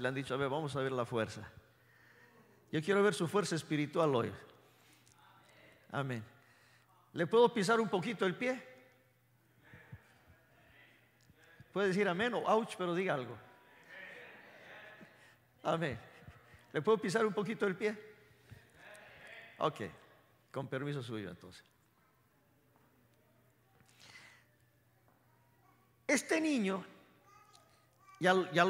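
A man speaks with animation into a microphone in a large echoing hall, in bursts with pauses.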